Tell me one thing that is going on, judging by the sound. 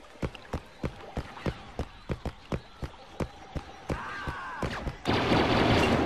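A blaster rifle fires rapid shots, each with a sharp zap.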